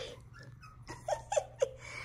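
Small puppies whimper softly.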